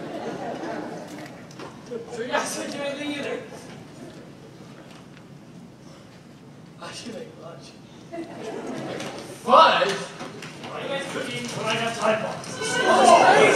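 Young people talk and call out on a stage.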